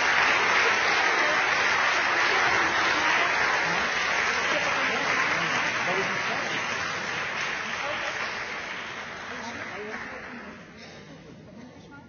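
An audience applauds loudly and the clapping slowly fades.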